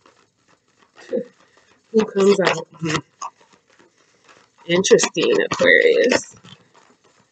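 Playing cards are shuffled and riffled in bursts, close by.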